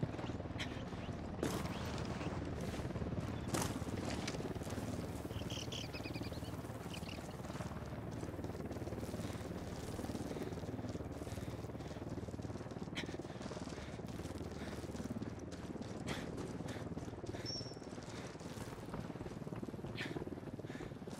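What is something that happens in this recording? Boots crunch on snow and gravel in footsteps.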